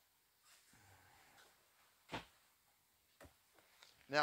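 A cushion creaks and thumps as a man lies down on a seat.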